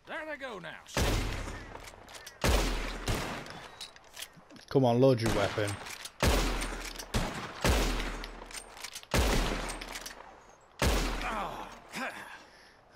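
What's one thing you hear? Rifle shots crack one after another, each echoing away across open ground.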